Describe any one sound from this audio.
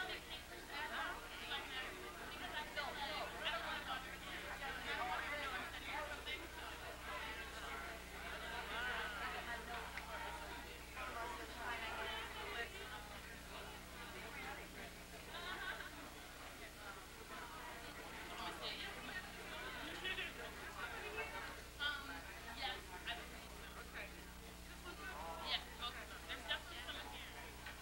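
A crowd of men and women chatter throughout a large room.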